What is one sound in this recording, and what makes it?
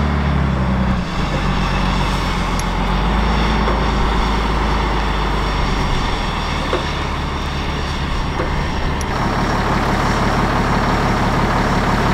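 A heavy diesel engine idles with a deep, steady rumble.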